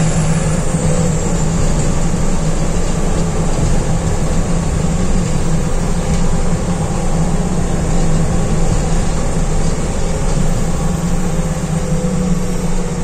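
A bus body rattles and vibrates as it drives along.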